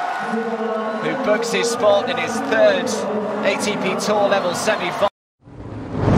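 A crowd cheers and applauds in a large arena.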